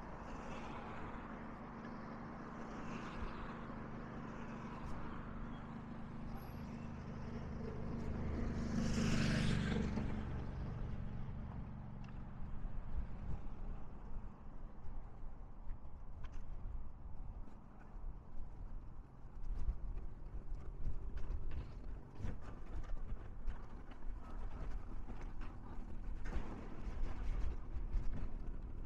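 Strong wind buffets and rumbles outdoors.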